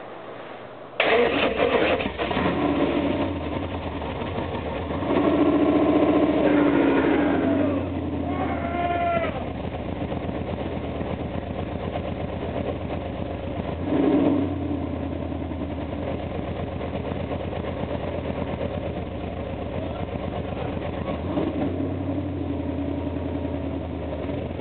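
A car engine idles with a steady, low rumble.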